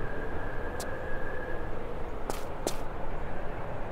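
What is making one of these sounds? A character's feet land with a thud on a hard floor.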